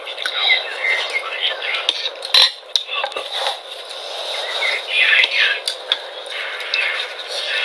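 A young woman slurps and chews food close by.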